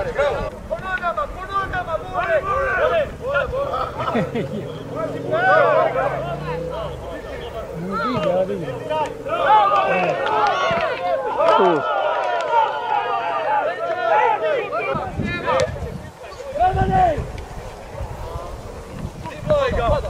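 A crowd of spectators shouts and cheers from the sidelines outdoors.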